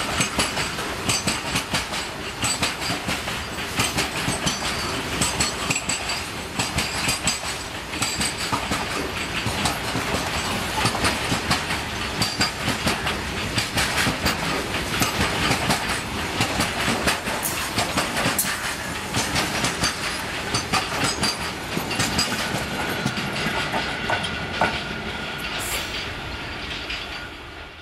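Train wheels clatter and click rhythmically over rail joints.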